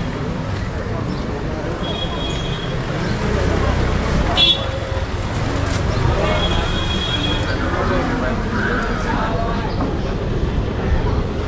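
A busy street market murmurs with many voices nearby.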